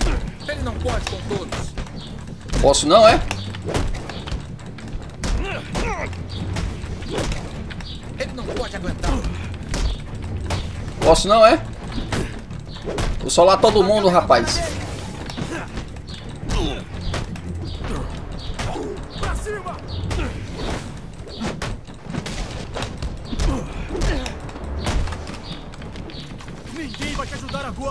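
Punches and kicks thud and smack in a fast fight.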